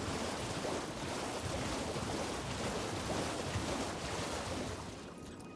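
A horse gallops through shallow water, hooves splashing.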